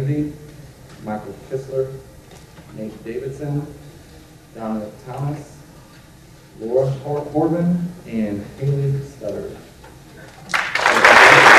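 A man speaks calmly into a microphone over a loudspeaker in a large hall.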